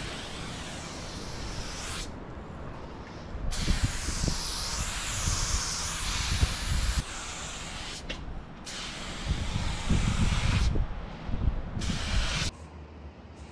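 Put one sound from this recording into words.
A spray can hisses in short and long bursts.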